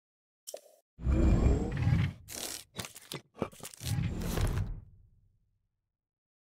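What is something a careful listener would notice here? A deep magical whoosh swells and fades.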